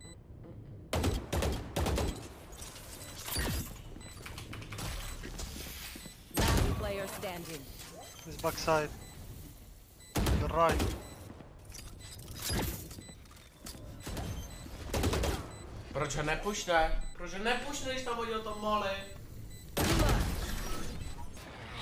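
Gunshots crack in quick bursts from a game.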